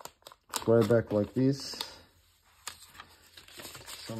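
A sticky note peels off a page.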